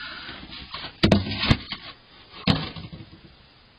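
A snow shovel bangs loudly against the ground.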